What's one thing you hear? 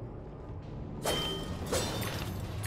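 A blade swishes and clangs in a sudden strike.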